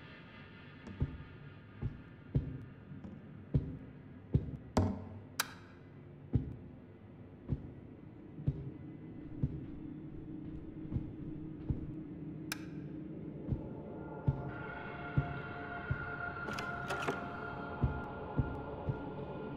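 Footsteps thud on a hard floor at a steady walking pace.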